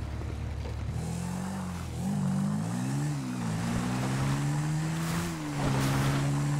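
A quad bike engine starts up and revs, rising and falling in pitch.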